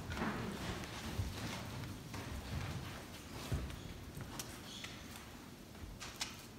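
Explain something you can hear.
Footsteps thud softly across a wooden floor in an echoing hall.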